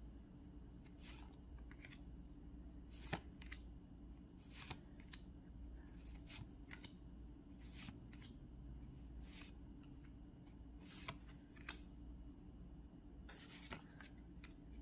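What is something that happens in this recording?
Trading cards swish and slide against each other as they are shuffled by hand, up close.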